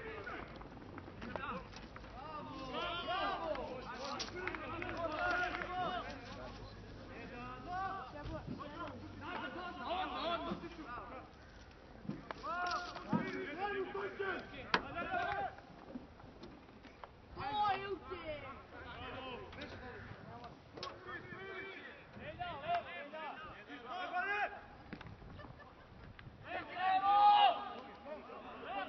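Men shout and call to each other across an open field.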